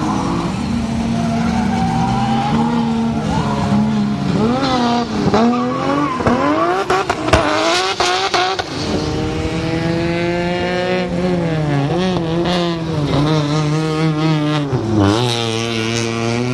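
Tyres squeal on the track.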